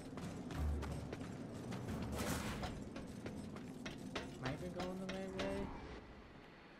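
Heavy footsteps thud on stone.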